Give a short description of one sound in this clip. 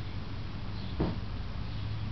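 Hands slap sharply against arms.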